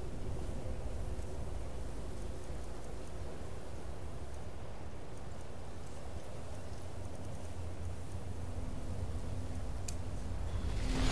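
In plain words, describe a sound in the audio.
Low wind rumbles steadily.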